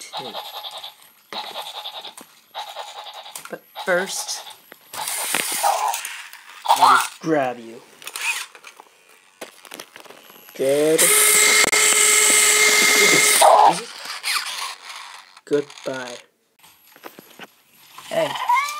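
A toy robot dinosaur plays loud electronic roars and sound effects through a small speaker.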